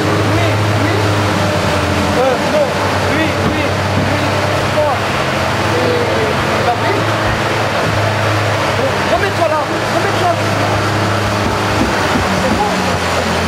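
Young players chatter and call out in a large echoing rink.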